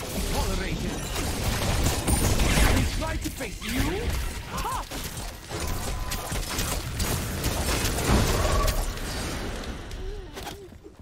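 Magic blasts and spell effects whoosh and crackle in a fight.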